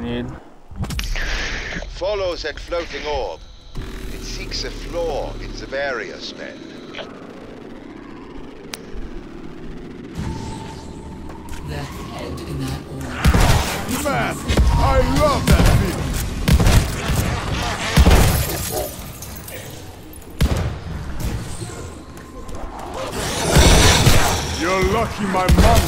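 Gunshots fire rapidly and loudly.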